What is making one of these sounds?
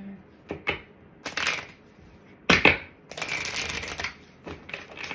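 Shuffled cards riffle and flutter.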